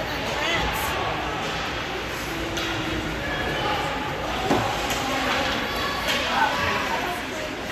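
Spectators chatter and call out in an echoing rink.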